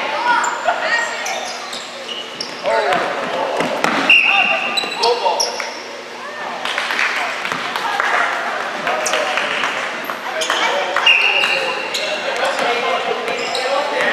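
Spectators call out and cheer from the sidelines.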